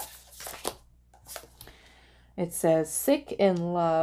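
A card slaps softly onto a table.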